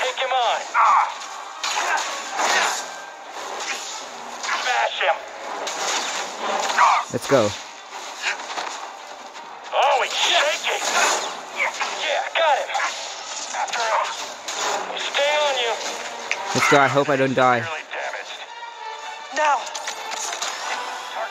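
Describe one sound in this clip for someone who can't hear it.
Energy blades hum and clash with sharp crackling hits.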